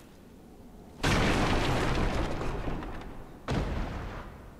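A wooden barrel smashes apart with a loud crash.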